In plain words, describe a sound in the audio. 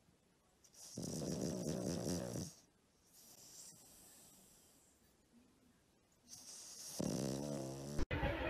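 A sleeping dog snores loudly in long, rumbling breaths.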